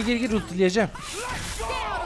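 A game weapon fires with a crackling, buzzing blast.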